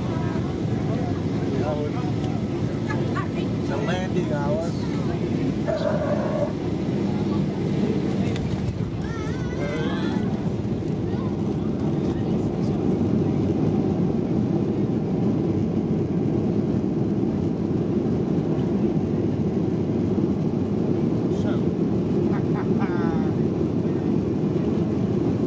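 A jet engine roars loudly and steadily close by.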